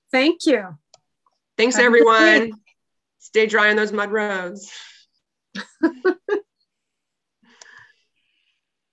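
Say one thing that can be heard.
An older woman speaks cheerfully over an online call.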